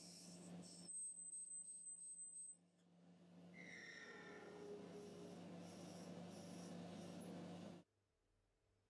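A lathe spins and hums steadily.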